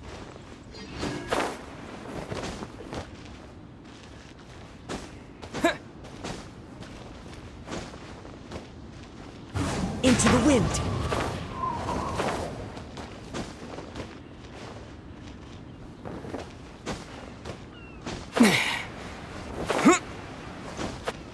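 Wind rushes past during a glide.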